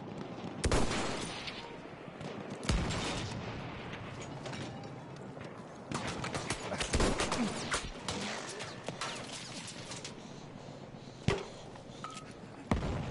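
Gunshots crack and boom.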